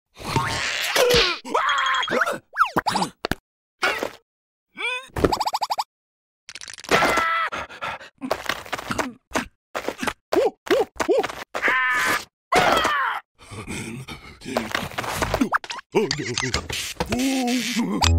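A cartoon larva babbles and squeals in a high, silly voice.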